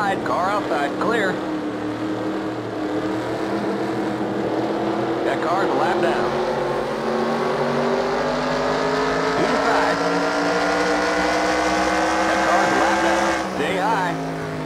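Other race car engines roar nearby.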